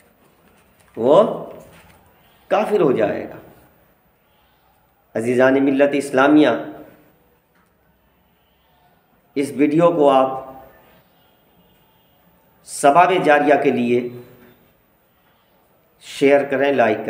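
A man speaks close to the microphone in short, melodic phrases with pauses.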